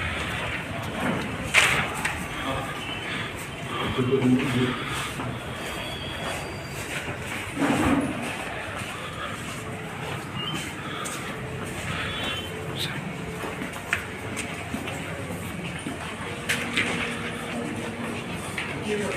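Several men talk among themselves nearby.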